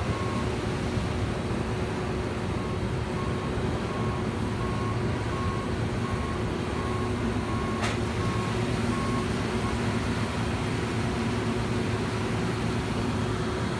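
Grain pours from a combine harvester's spout into a trailer with a steady hiss.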